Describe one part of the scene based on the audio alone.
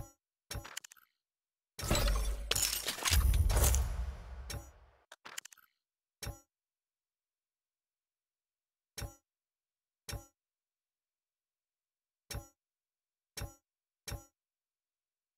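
A short game menu sound chimes with each click.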